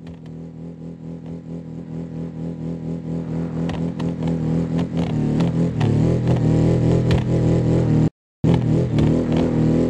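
Water splashes loudly as a car drives through it.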